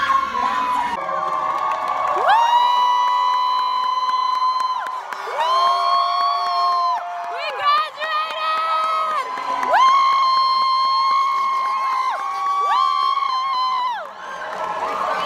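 A young woman sings loudly and joyfully close by.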